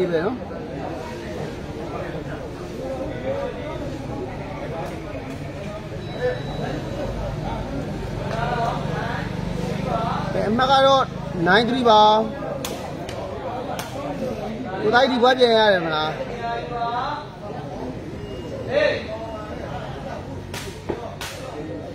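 A crowd of men chatters in the background.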